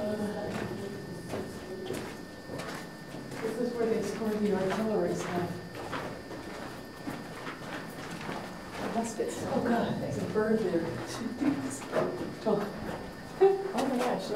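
A man speaks calmly nearby, his voice echoing in a stone passage.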